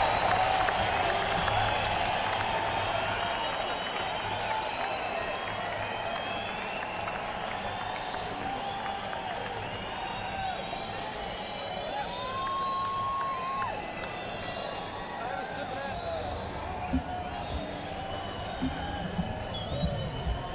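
Drums are played on a stage.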